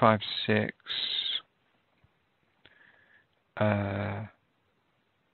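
A man speaks calmly and close into a microphone, in short bursts.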